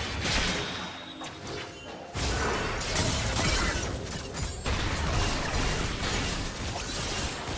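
Magic spells whoosh and burst in a fast fantasy battle.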